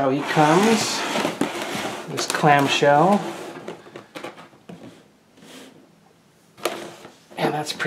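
A plastic tray crinkles and rattles as hands handle it.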